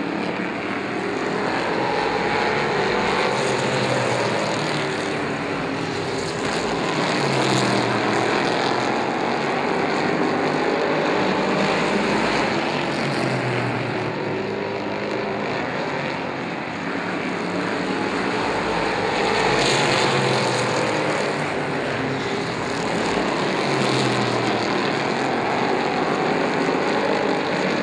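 Race car engines roar loudly as cars speed around a track.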